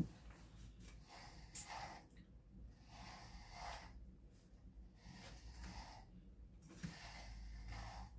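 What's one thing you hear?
A brush rasps softly through a dog's fur in repeated strokes.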